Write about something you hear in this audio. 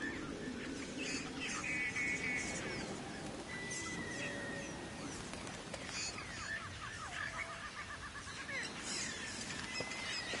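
Birds chirp and trill all around.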